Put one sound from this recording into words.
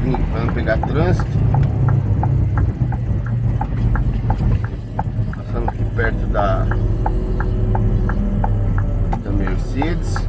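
A vehicle engine hums steadily from inside while driving.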